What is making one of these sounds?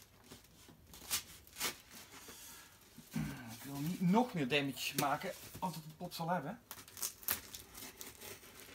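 Tape tears off a cardboard box.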